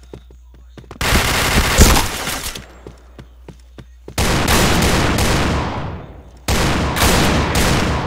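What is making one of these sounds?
Gunshots blast loudly in quick bursts.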